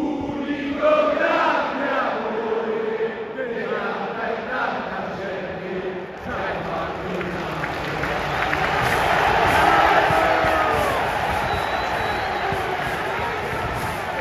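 A huge stadium crowd sings loudly together in a large open space.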